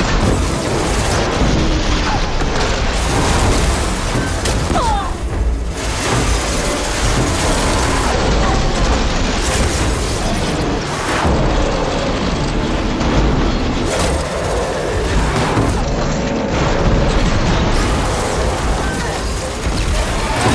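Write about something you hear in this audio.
Explosions burst and crackle.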